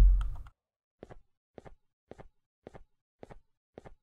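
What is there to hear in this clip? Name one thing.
Footsteps thud at an even, steady pace.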